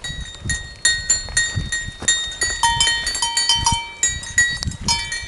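Small metal bells on goats' collars jingle and clang repeatedly.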